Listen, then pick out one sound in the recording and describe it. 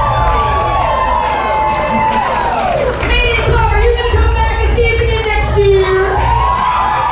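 Loud dance music with a thumping beat plays through loudspeakers in a large hall.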